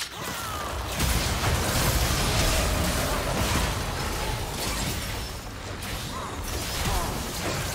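Magic blasts and explosions crackle and boom in a fast, noisy battle.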